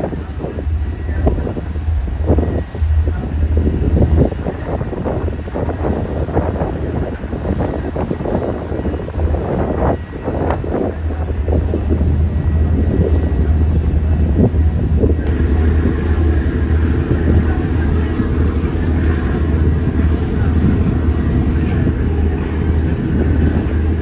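Water splashes and churns against a moving hull.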